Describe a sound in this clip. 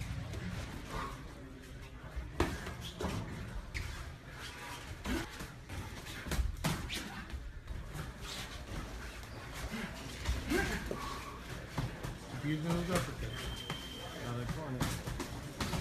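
Gloved punches thud against padding in quick bursts.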